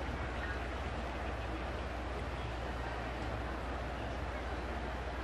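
A stadium crowd murmurs steadily in a large open space.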